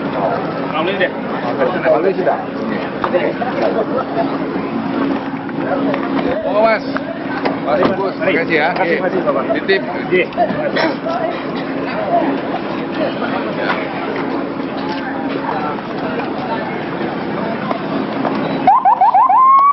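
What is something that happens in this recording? Several men talk and call out nearby in a lively crowd outdoors.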